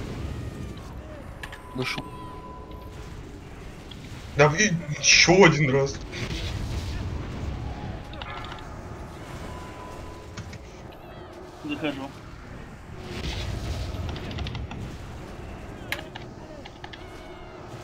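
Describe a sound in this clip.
Magic spells crackle and whoosh in a battle.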